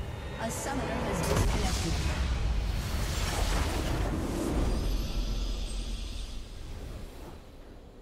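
A loud game blast of magic bursts and crashes.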